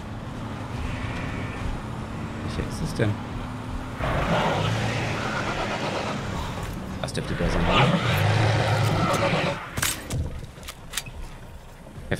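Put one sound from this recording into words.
A vehicle engine rumbles as it drives over rough ground.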